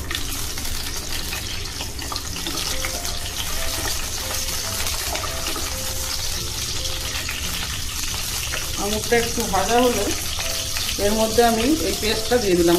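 Vegetables sizzle in hot oil in a pan.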